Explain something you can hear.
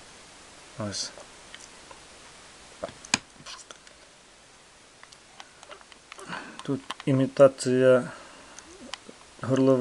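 Small plastic toy cars clack and click as a hand picks them up and moves them.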